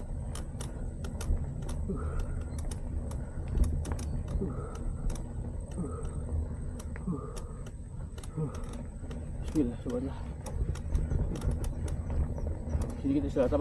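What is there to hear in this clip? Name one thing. Bicycle tyres roll and crunch over a rough dirt path.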